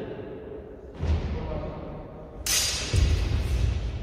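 Bamboo swords clack together.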